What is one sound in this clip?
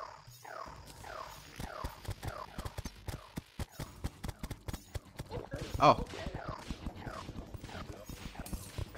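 Magic bolts fire in a quick stream of sharp, falling zaps.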